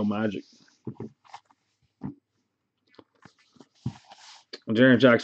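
Trading cards slide and rustle softly between hands.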